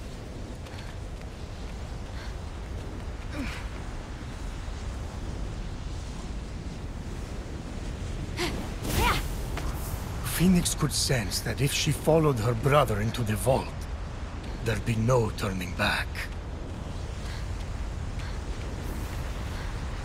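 A character's hands scrape and grip on rock while climbing.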